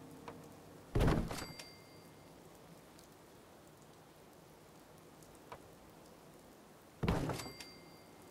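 A heavy wooden thud sounds as stairs drop into place.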